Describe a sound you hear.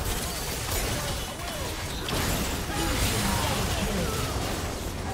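Magic spells crackle and burst during a fast fight.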